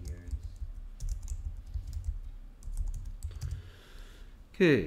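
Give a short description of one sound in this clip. Keys click on a computer keyboard in quick taps.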